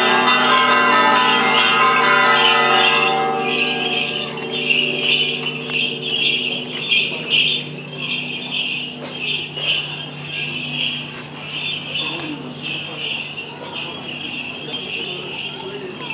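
Footsteps shuffle along a paved street.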